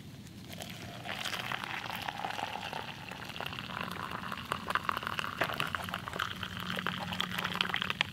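Hot water pours and splashes into a mug.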